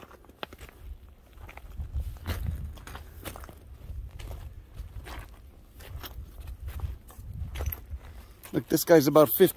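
Footsteps crunch on loose rocks and gravel.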